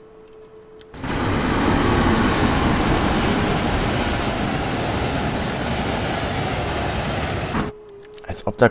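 A train rushes past with a loud, roaring noise.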